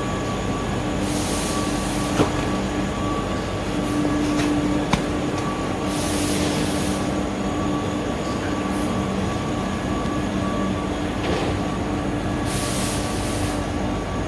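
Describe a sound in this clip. Plastic wrapping rustles as bundles are handled.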